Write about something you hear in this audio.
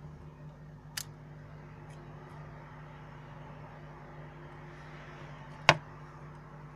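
Small plastic phone parts snap and click sharply as they are pried apart.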